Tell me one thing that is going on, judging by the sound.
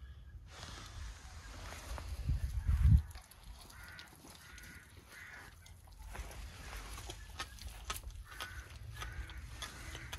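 Lion cubs chew and tear at raw meat with wet, crunching bites.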